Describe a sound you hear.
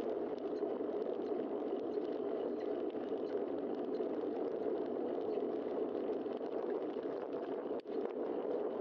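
Wind rushes and buffets steadily against a moving bicycle rider.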